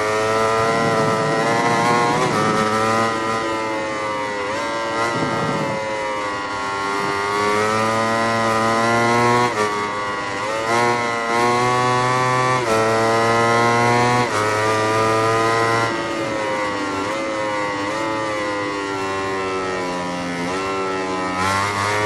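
A racing motorcycle engine screams, its pitch rising as it speeds up and dropping as it slows for corners.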